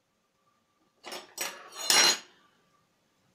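A metal fork clinks and scrapes against a glass bowl.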